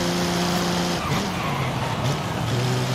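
A car engine drops in pitch as the car slows down.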